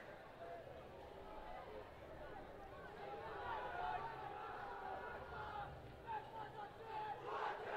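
Young women in a team huddle call out to one another outdoors, heard from a distance.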